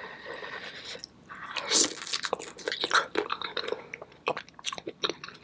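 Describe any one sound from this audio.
Crunchy seafood shells crack and snap.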